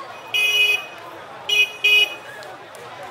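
A motorcycle horn beeps several times.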